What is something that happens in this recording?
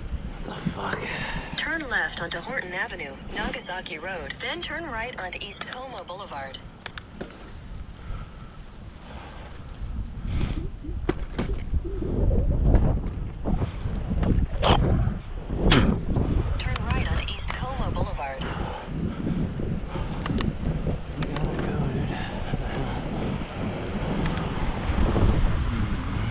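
Wind buffets a microphone in low gusty rumbles.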